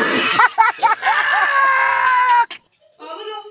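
A man yells loudly and harshly close by.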